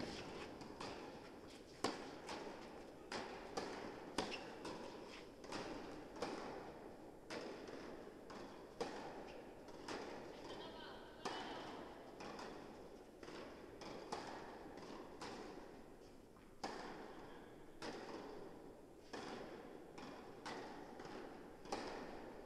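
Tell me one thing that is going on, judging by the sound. A tennis ball is struck back and forth with rackets in a large echoing indoor hall.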